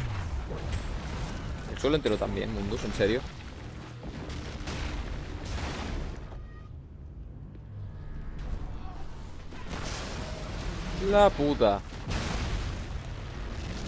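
Debris crashes and rumbles as a structure collapses.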